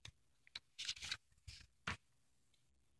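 A book page rustles as it turns.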